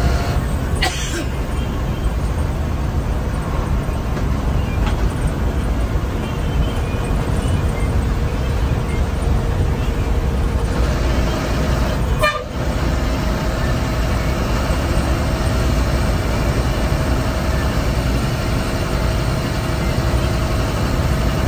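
Tyres roll on the road with a steady rushing noise.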